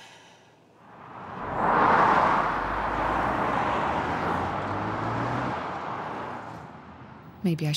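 Traffic rushes past on a highway.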